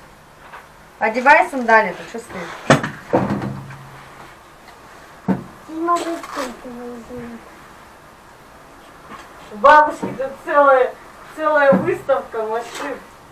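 A young child cries and whines loudly nearby.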